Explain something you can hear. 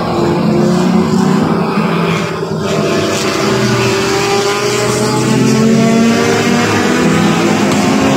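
Racing car engines roar and whine as the cars speed around a track.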